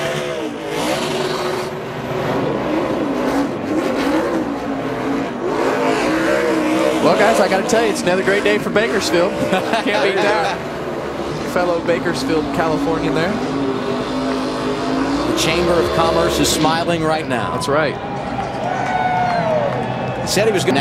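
Tyres screech as a car spins on the track.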